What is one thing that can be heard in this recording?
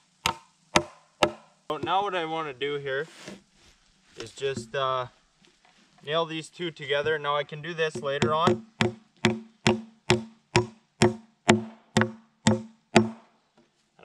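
A hammer knocks on wood in a steady rhythm.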